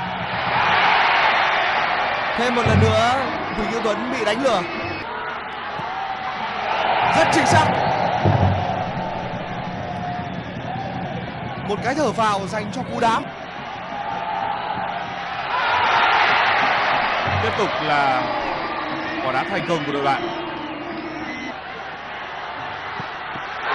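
A large crowd roars and cheers in a stadium, swelling in loud waves.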